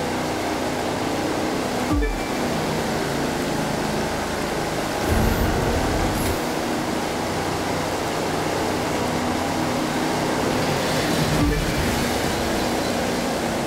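A powerboat engine roars steadily at high speed.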